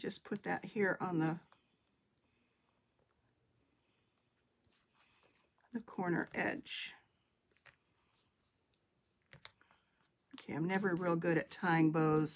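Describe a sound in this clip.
An older woman talks calmly and closely into a microphone.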